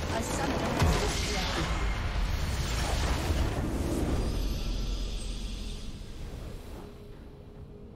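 A huge explosion booms and rumbles, then slowly fades.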